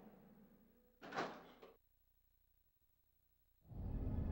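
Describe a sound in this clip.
A heavy door creaks slowly open.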